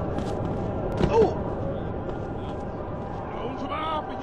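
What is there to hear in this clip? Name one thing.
A fist thumps against a body.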